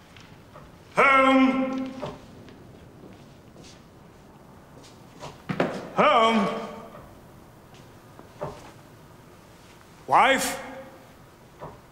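A man calls out loudly in an echoing hall.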